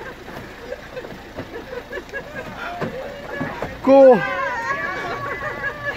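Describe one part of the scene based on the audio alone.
A van's sliding door rolls open.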